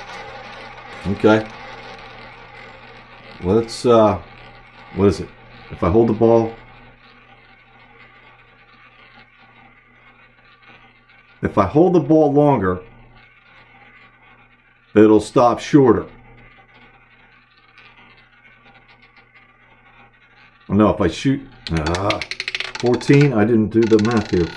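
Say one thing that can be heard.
A roulette wheel spins with a soft, steady whir.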